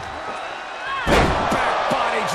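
A heavy body slams onto the ring mat with a loud thud.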